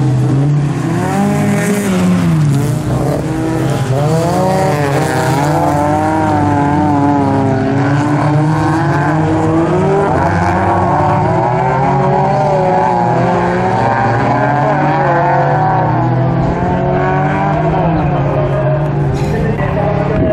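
Several racing car engines roar loudly outdoors.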